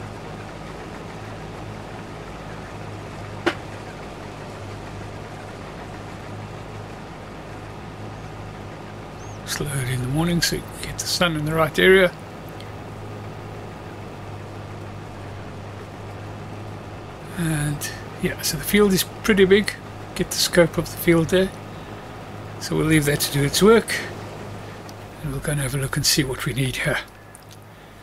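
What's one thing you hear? A combine harvester engine hums steadily while cutting grain.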